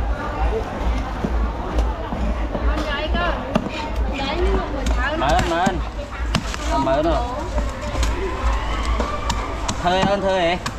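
A knife scrapes scales off a fish on a wooden board with quick rasping strokes.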